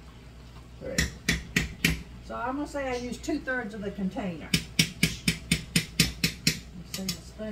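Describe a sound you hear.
A spoon taps sharply against a metal pot.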